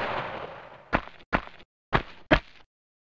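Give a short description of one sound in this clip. Footsteps tap quickly on a hard stone floor.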